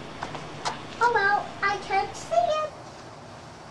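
A little girl calls out in a high voice close by.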